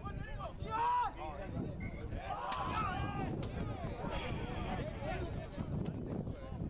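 Players shout and call to each other outdoors on an open field.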